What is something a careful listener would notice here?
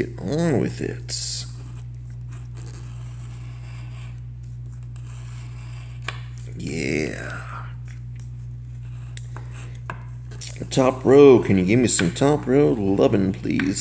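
A coin scratches at a card.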